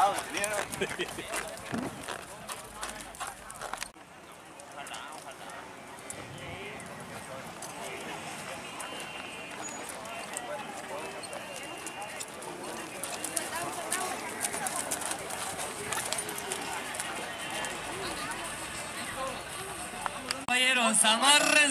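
Horses' hooves clop slowly on soft dirt.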